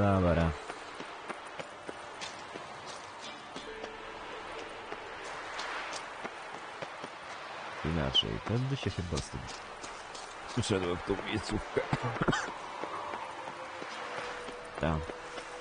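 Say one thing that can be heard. A young man talks into a close microphone in short, lively bursts.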